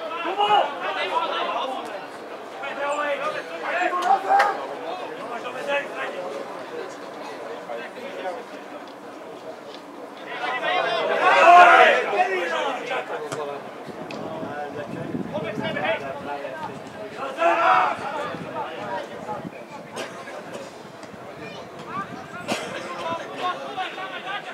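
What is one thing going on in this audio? Men talk and call out nearby, outdoors.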